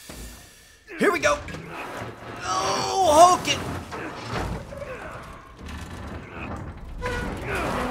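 Heavy metal doors grind and scrape as they are forced open.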